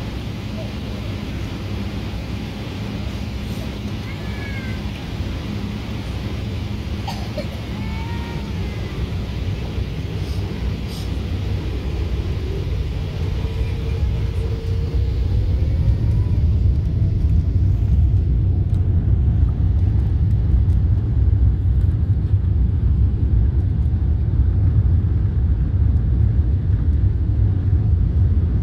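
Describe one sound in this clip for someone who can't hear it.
Jet engines roar steadily inside an aircraft cabin and grow louder as the plane speeds up along the runway.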